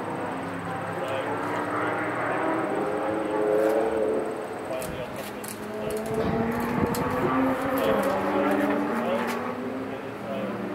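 A group of men chat nearby outdoors.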